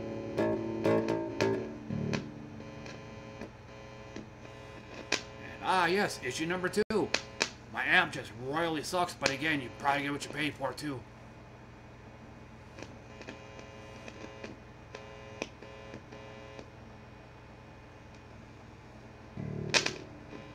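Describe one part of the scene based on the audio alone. An electric bass guitar plays plucked notes.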